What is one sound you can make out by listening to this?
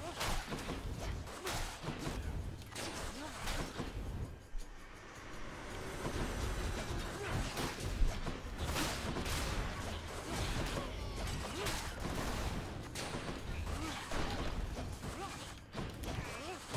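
Sword slashes and magic blasts crackle in quick bursts.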